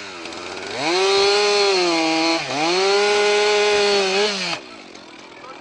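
A chainsaw revs loudly, cutting through a log.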